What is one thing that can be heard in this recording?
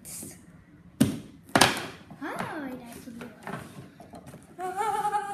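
Cardboard rips and scrapes as a box is pulled open.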